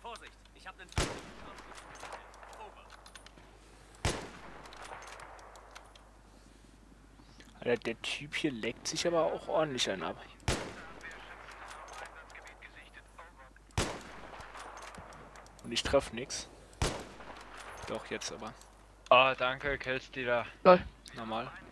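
A rifle fires sharp single shots, one at a time, with a short echo after each.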